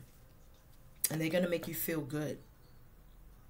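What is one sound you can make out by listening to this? A woman speaks briefly and calmly close by.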